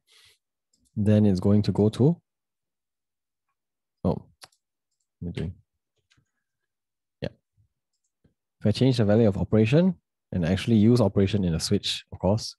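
A young man talks calmly and closely into a microphone, in short bursts.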